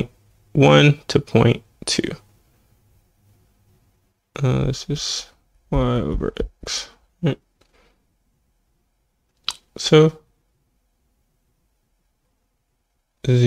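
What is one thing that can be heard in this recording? A young man speaks calmly and close to a microphone, in short bursts with pauses.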